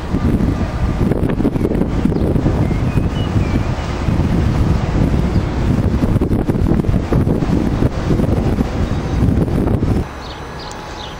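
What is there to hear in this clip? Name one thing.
A train rumbles in the distance along the tracks.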